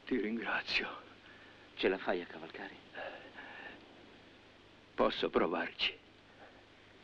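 An elderly man speaks weakly and hoarsely, close by.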